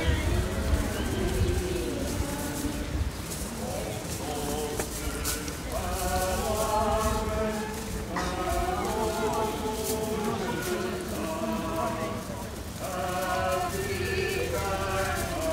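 A crowd of men and women sings together slowly outdoors.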